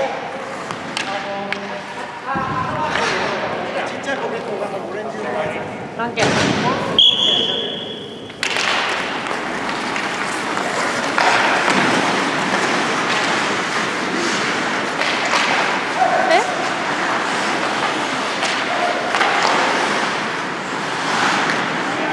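Hockey sticks clack against the ice and the puck.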